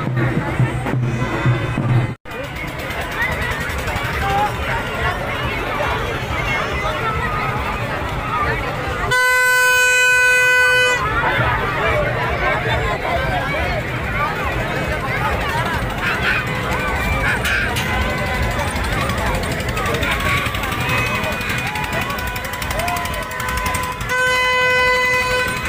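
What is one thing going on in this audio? A crowd of men, women and children chatters and calls out nearby outdoors.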